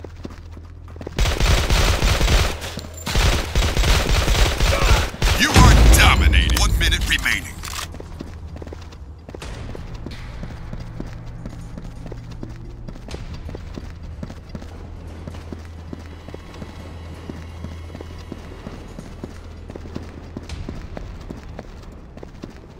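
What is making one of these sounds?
Footsteps thud steadily on hard floors.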